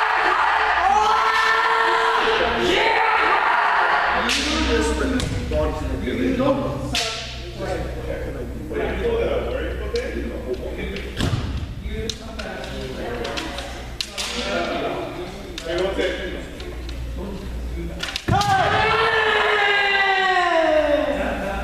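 Men shout loudly and fiercely in a large echoing hall.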